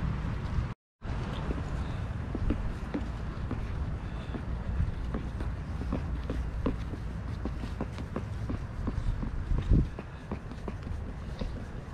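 A spoon scrapes and clinks while stirring a drink in a plastic cup.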